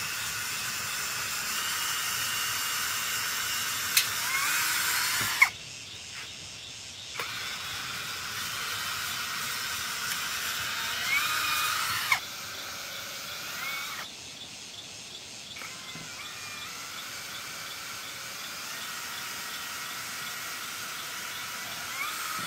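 A cordless drill whirs as it drives screws into bamboo.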